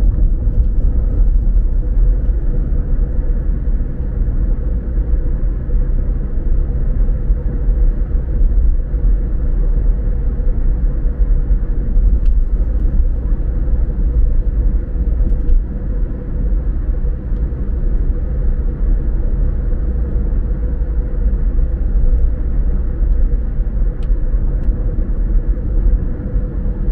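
A car's engine hums steadily from inside.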